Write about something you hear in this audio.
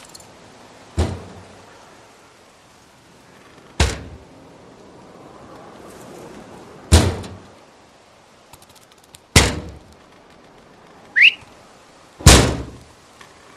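A rifle fires loud single shots that echo outdoors.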